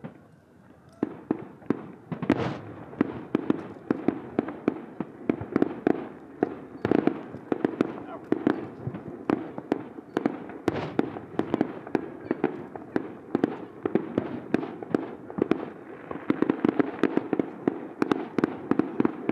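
Fireworks crackle rapidly in a dense fizzing rush.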